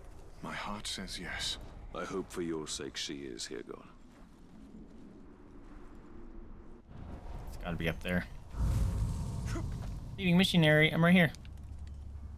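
A man talks into a microphone with animation, close up.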